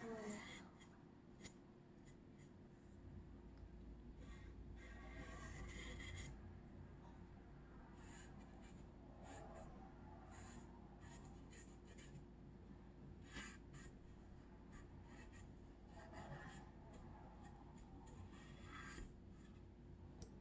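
A paintbrush brushes lightly against wood.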